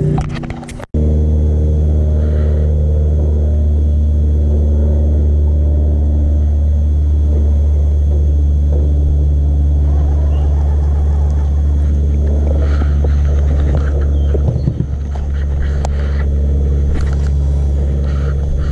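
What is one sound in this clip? An electric boat motor hums steadily.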